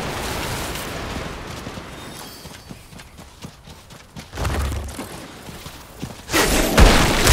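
Hooves thud on sand as a horse gallops.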